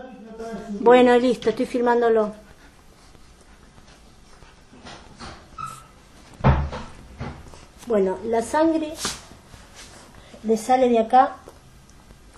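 A dog whines and yowls in long, wavering cries close by.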